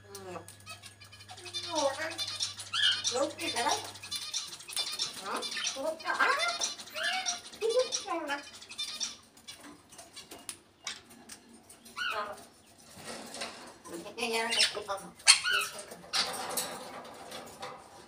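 A parrot chatters and whistles close by.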